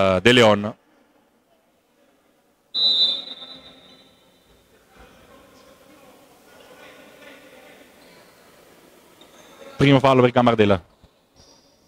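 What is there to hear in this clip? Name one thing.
A man shouts loudly from the sideline.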